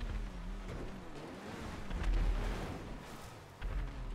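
A car crashes and scrapes against obstacles.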